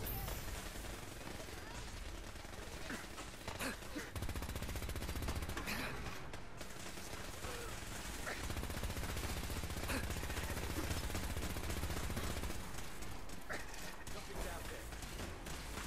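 Energy bolts zap and crackle past.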